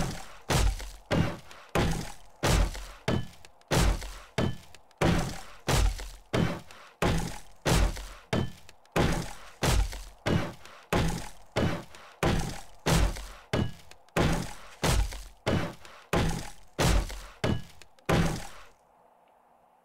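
A hammer strikes wood in a quick, even rhythm.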